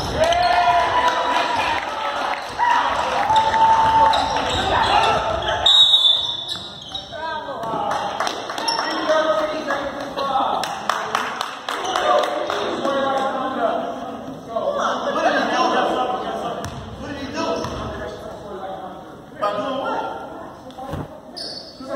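Players and spectators shout and call out in a large echoing gym.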